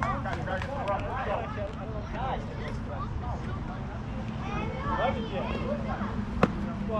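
Young players call out and chatter across an open field.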